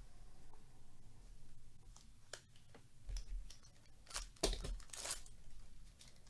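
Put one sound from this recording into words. A foil pack crinkles and tears.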